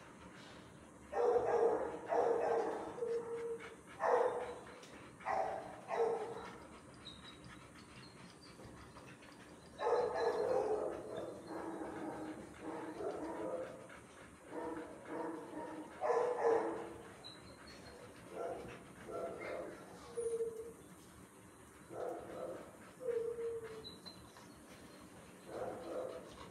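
A dog pants nearby.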